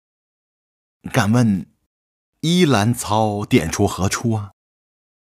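A middle-aged man speaks with a questioning tone, close by.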